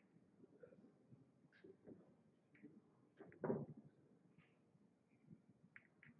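Billiard balls clack against each other as they are racked.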